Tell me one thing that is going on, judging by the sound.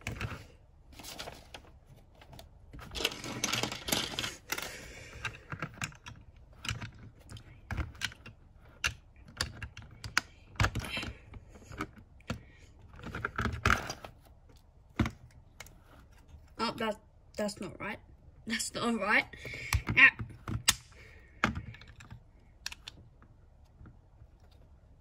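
Plastic toy bricks click and snap together.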